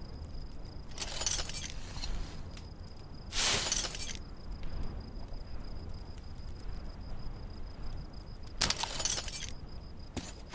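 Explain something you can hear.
Gear rustles as items are gathered up.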